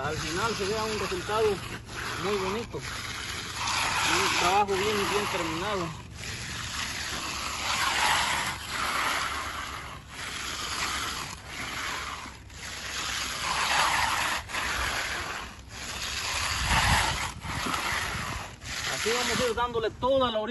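A steel edging trowel scrapes and swishes over wet concrete in repeated strokes.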